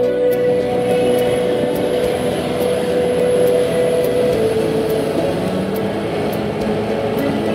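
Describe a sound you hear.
A bulldozer's diesel engine rumbles steadily close by.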